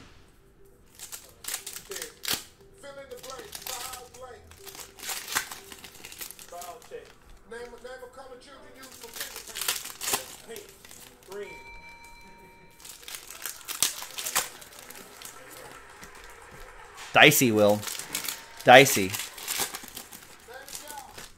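Foil card packs crinkle and tear as they are opened.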